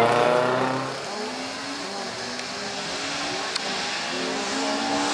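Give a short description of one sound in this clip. A car engine revs high as it approaches.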